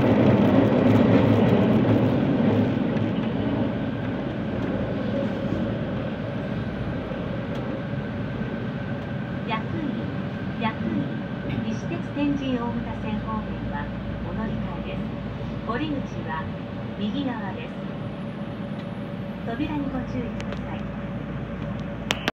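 A train rumbles steadily through a tunnel and slows down.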